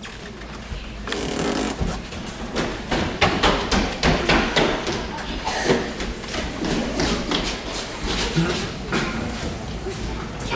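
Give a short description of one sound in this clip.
Footsteps thump and patter across a wooden stage in a large hall.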